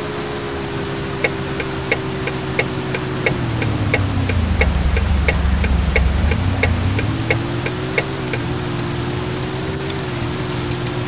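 A heavy truck engine drones steadily, dropping in pitch as it slows and then rising again as it speeds up.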